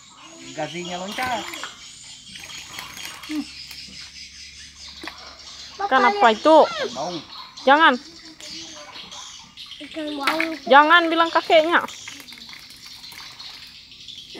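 Water splashes as fish drop into a metal pot.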